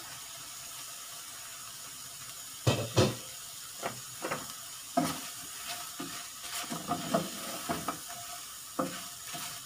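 Shrimp sizzle in hot oil in a pan.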